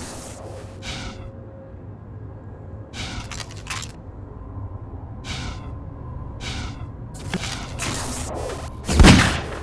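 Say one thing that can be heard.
Footsteps thud on hard ground in a game.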